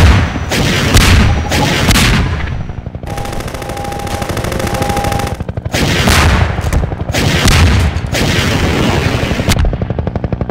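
A mounted machine gun fires rapid bursts.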